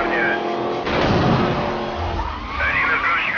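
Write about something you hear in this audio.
A car crashes into another car with a metallic bang.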